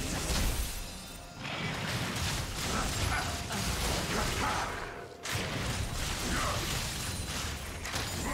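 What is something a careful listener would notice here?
Game weapons clash and strike in quick hits.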